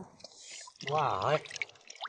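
Shallow water splashes and sloshes around a hand.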